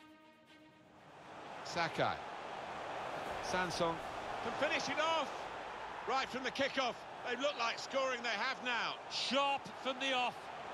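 A large crowd roars and cheers loudly.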